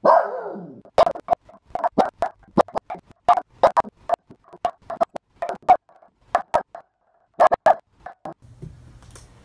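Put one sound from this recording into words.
A small dog barks rapidly and excitedly.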